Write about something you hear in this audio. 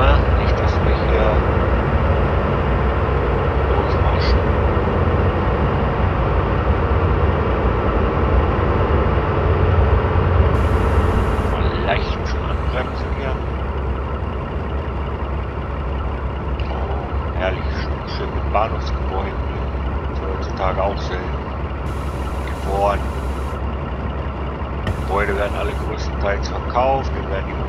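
A train rumbles steadily along the rails, louder and boomier at first inside a tunnel.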